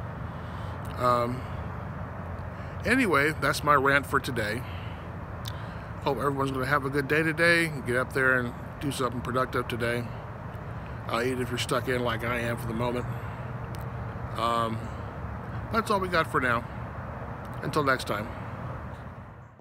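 A middle-aged man talks calmly close to the microphone.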